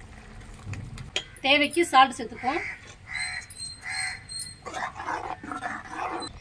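A metal ladle stirs and sloshes liquid in a metal pot.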